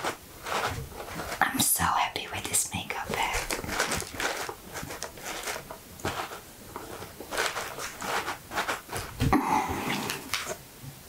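Fingertips rub and crinkle lace on a box, close up.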